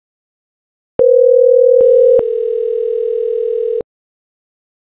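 A phone ringtone sounds in a steady, high tone.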